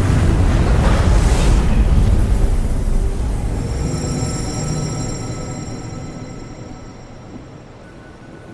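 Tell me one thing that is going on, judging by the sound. A deep explosion booms and rumbles, then slowly fades away.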